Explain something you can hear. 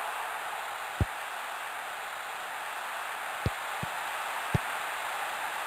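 A football is kicked with short, dull thuds.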